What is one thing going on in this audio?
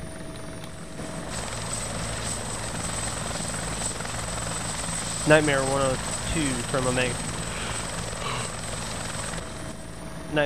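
A helicopter's rotor thrums and whooshes steadily.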